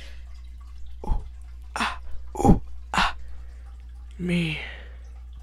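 A young woman speaks in short, breathy bursts close by.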